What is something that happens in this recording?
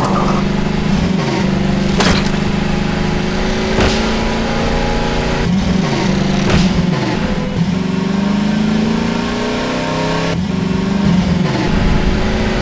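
A buggy engine hums steadily and revs up and down.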